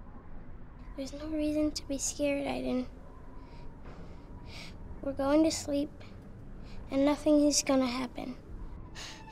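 A woman speaks softly and soothingly nearby.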